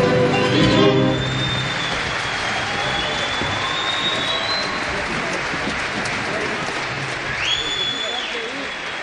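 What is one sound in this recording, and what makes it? Audience members whistle loudly.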